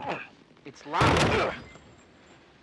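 A man kicks a wooden door with a heavy thud.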